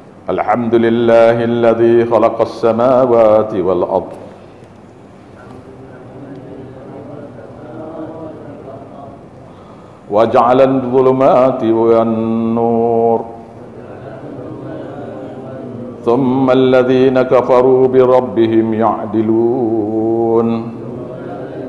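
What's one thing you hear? An elderly man speaks into a microphone in a slow, drawn-out, sing-song voice, with pauses between phrases.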